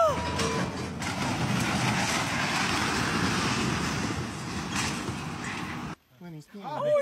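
A tall concrete silo topples and crashes to the ground with a long rumble.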